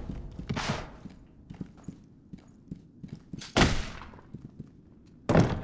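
Footsteps tread softly on wooden boards.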